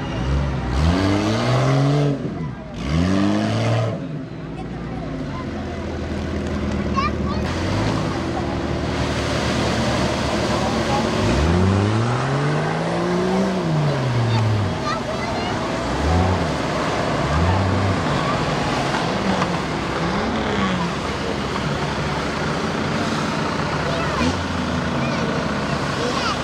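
Tyres churn and splash through deep mud.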